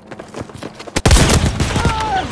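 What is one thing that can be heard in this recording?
A rifle fires a loud, sharp shot.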